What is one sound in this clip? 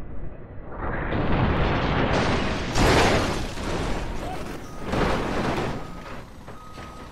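Water splashes heavily as a heavy truck plunges into a pool.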